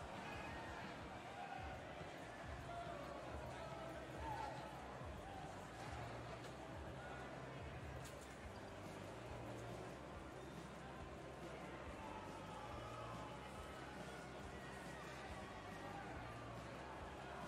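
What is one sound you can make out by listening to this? Skates scrape across ice.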